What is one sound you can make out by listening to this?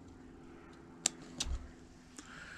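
A small tool clicks and taps against wooden ship rigging.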